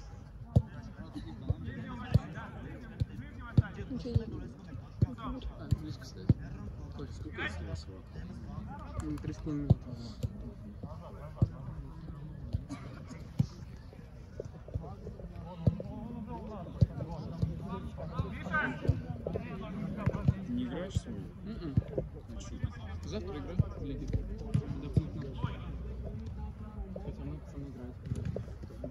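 Young men shout and call out across an open field at a distance.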